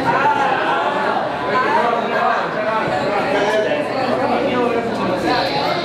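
A young man sings into a microphone, heard through loudspeakers.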